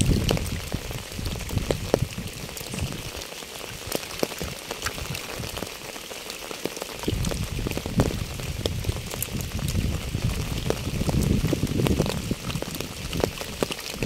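Raindrops patter steadily on wet pavement and puddles outdoors.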